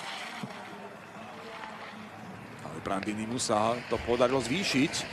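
Skis scrape and hiss on hard snow.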